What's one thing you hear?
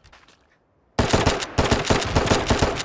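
A pistol fires rapid, loud shots close by.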